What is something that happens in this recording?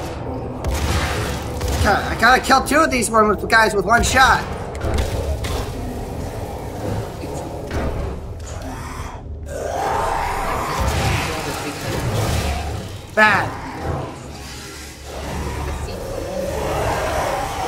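Shotgun blasts boom and echo.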